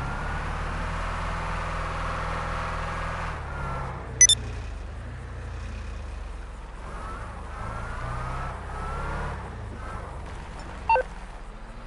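A heavy truck engine rumbles steadily as it drives.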